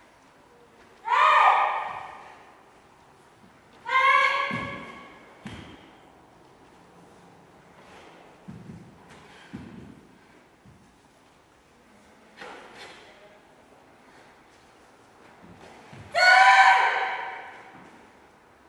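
Adults shout sharp, loud karate cries that echo in a large hall.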